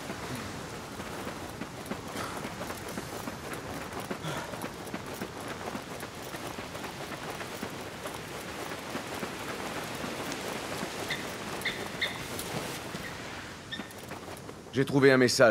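Footsteps run quickly over sandy ground.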